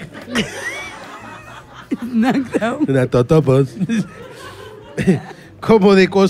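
A woman laughs into a microphone.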